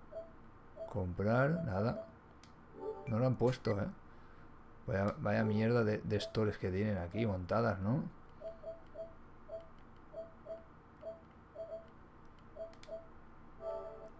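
Short menu beeps sound one after another.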